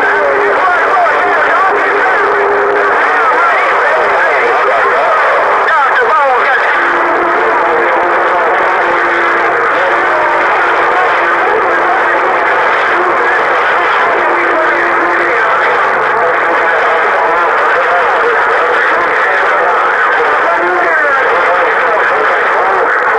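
A shortwave radio hisses and crackles with loud, steady static.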